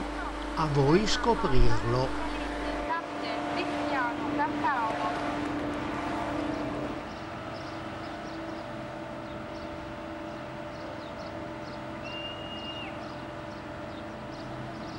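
A train engine hums steadily nearby.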